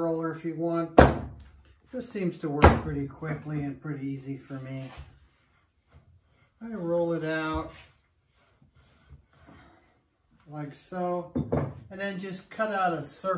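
A rolling pin thumps and rolls on clay.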